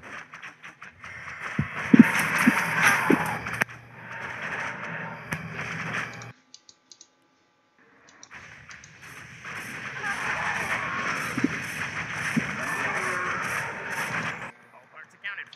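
Game battle sounds of clashing weapons and spell blasts play loudly.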